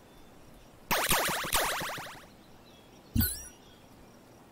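Cartoon battle sound effects clatter and whoosh.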